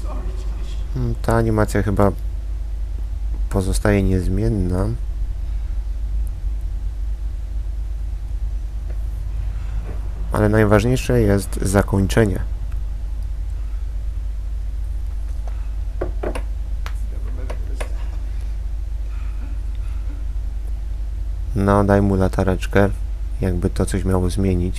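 A man speaks quietly and calmly, close by.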